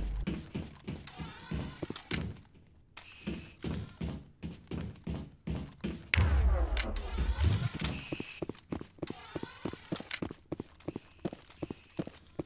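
Footsteps tap quickly on a metal floor.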